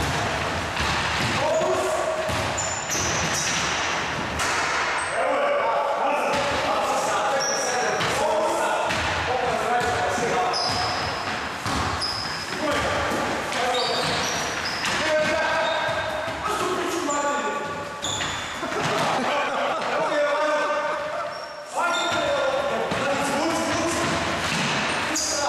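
Men talk and call out to each other in an echoing hall.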